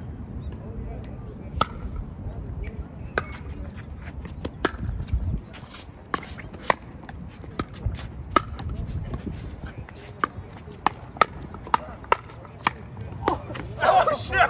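Paddles hit a plastic ball with sharp hollow pops in a quick rally.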